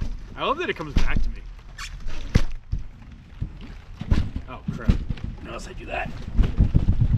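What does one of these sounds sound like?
Plastic bottles thud and rattle on a trampoline mat.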